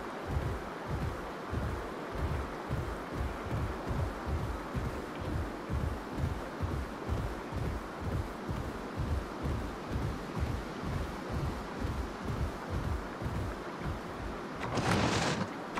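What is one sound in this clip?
Heavy creature footsteps thud in a quick, steady rhythm.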